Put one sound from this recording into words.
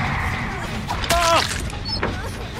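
A blade slashes and strikes with a wet thud.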